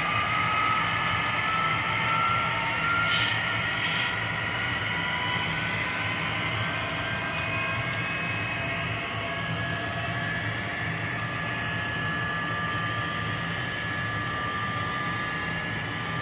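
A model train's electric motor whines as the train rolls along the track.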